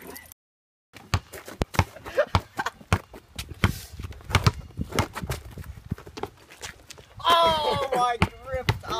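A basketball bounces repeatedly on pavement.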